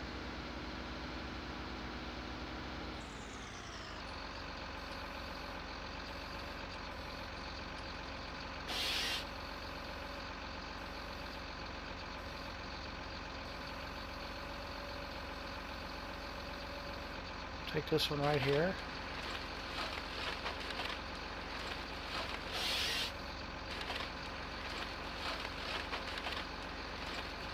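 A forestry machine's engine hums steadily.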